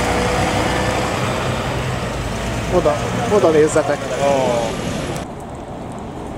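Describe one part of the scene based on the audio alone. An articulated diesel city bus pulls away.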